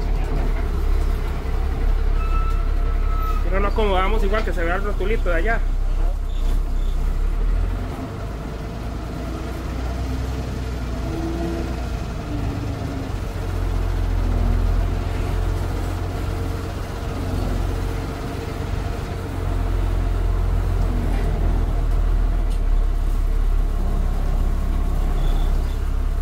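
A bus rattles and creaks over a narrow road.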